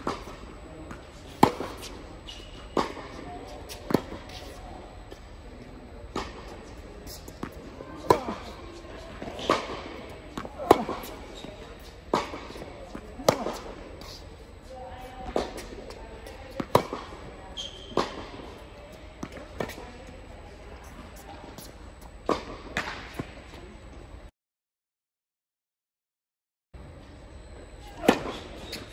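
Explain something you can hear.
Tennis balls are struck with a sharp pop, back and forth in a large echoing hall.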